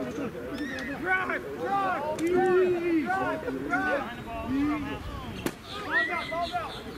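Several young men shout and call out outdoors, close by.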